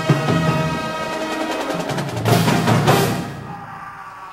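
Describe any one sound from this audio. A brass band plays loudly in a large hall and ends on a final chord.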